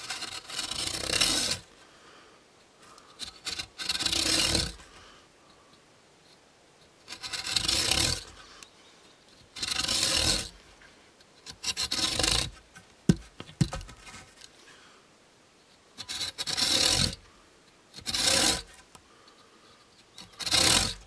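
A hand saw rasps through a wooden log in short bursts.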